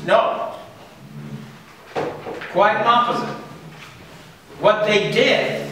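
An elderly man lectures with animation, speaking loudly in a room with some echo.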